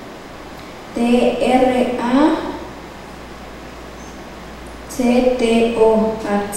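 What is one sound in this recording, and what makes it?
A young girl speaks slowly into a microphone over a loudspeaker.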